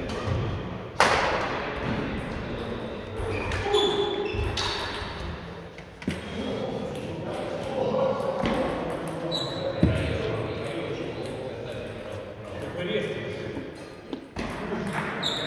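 Shuttlecocks are struck with rackets, with sharp pops echoing in a large hall.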